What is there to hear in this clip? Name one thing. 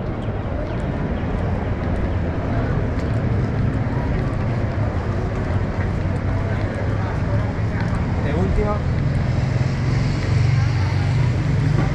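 A crowd of people chatters outdoors on a busy street.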